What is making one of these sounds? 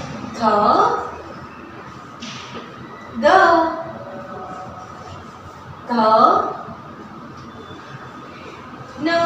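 A young woman speaks clearly in short phrases, close by.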